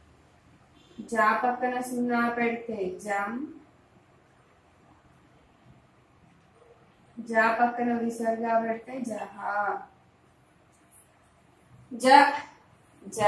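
A woman recites in a slow, drawn-out voice nearby.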